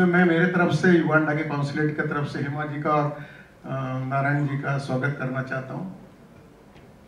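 A man speaks into a microphone over loudspeakers, calmly, in a large hall.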